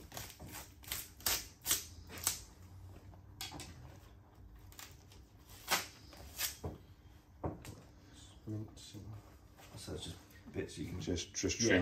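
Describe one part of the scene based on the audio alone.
Fat and membrane tear wetly as they are pulled away by hand.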